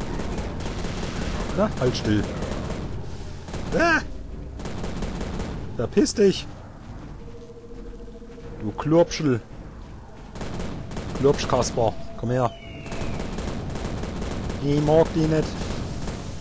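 A weapon fires in short, loud bursts.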